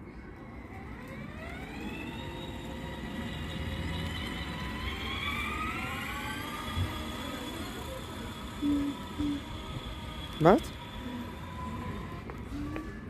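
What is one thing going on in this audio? A small electric toy car whines as its motor speeds up and drives along.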